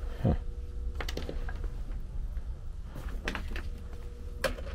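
Tools knock and rattle as they are handled close by.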